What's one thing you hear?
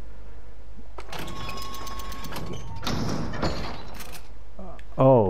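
A shotgun is lifted and handled with metallic clicks.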